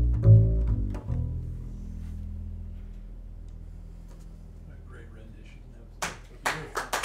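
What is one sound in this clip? A double bass plays a deep, ringing note that slowly fades.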